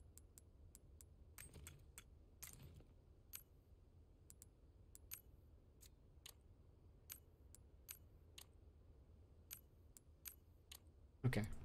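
Short game menu clicks tick again and again.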